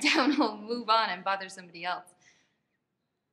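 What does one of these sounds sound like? A young woman talks with animation.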